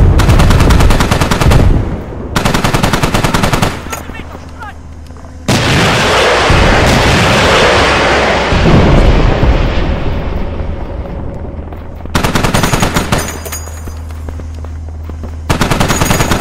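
Large explosions boom and rumble.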